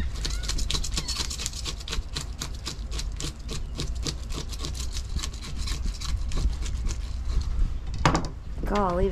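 A knife scrapes rapidly across fish scales.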